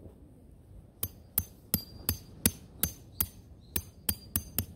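A hammer knocks a stake into the ground with quick, steady blows.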